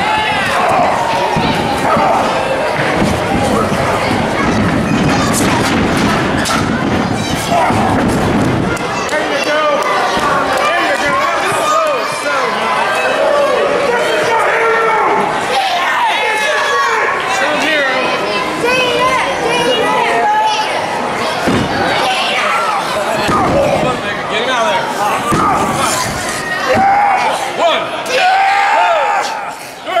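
A crowd of people cheers and shouts loudly in an echoing hall.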